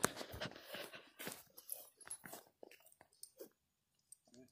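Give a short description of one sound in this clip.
Footsteps crunch and rustle on the ground close by.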